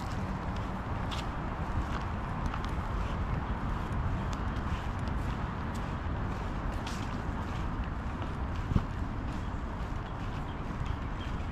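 Wind blows steadily outdoors, rustling through the trees.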